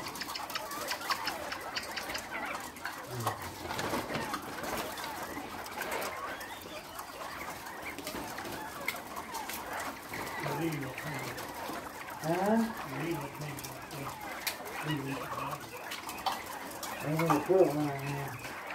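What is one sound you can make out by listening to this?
Chickens cluck and chatter in their cages.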